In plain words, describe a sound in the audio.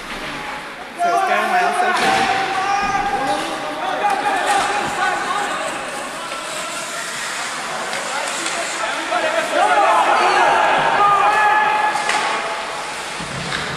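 Young men shout and call out to each other across the rink.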